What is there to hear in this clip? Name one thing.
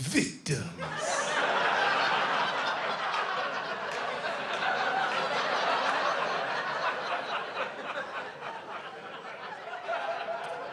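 A large audience claps and cheers.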